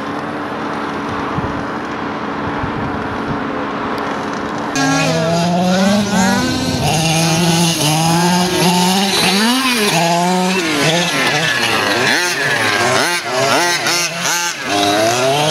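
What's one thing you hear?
A small motor whines and revs as a toy car speeds over grass.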